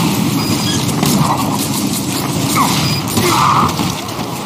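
A bowstring creaks and twangs as an arrow is loosed.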